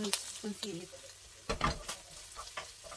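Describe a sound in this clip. A pan clanks against a stove burner.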